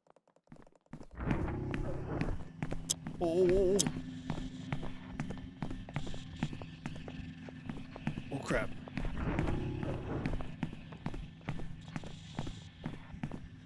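Footsteps tap at an even, quick pace.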